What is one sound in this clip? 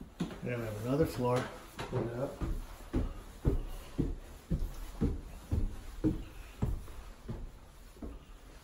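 Footsteps thump up wooden stairs at a steady pace.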